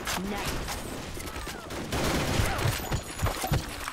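Gunshots crack sharply in quick bursts.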